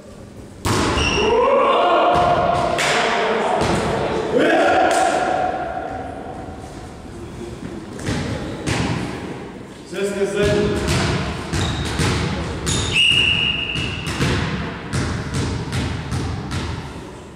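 Young men shout to each other in a large echoing hall.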